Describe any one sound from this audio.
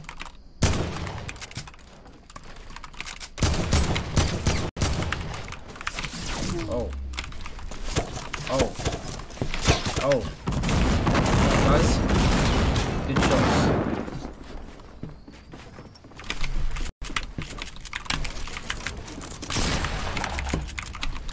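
Video game gunshots and building clatter sound in quick bursts.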